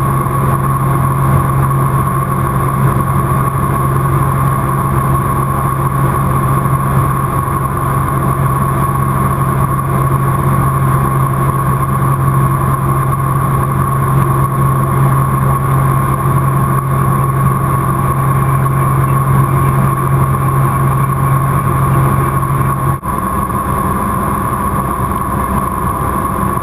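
A small plane's engine drones steadily inside the cabin, changing tone near the end.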